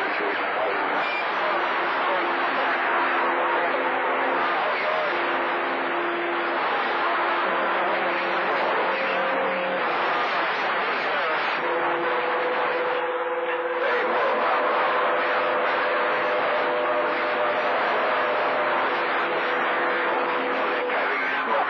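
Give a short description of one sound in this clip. A radio receiver hisses with loud, steady static.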